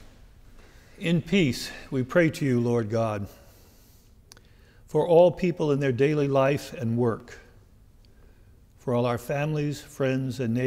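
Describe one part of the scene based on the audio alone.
An elderly man speaks calmly and slowly into a microphone.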